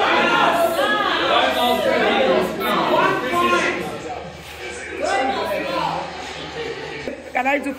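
A group of men and women sing together loudly, close by.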